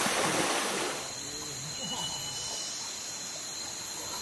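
A river flows gently.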